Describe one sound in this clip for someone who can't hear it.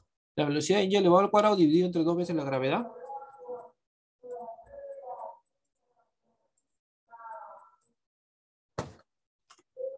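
A young man speaks calmly and explains through a microphone, heard as in an online call.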